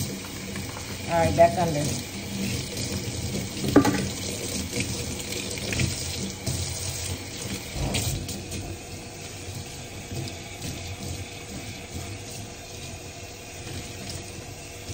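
Water runs from a tap and splashes steadily.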